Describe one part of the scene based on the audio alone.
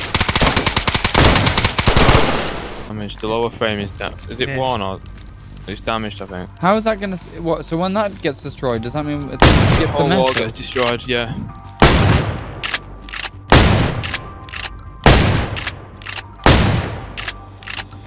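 A shotgun fires loud blasts, one after another, ringing off nearby walls.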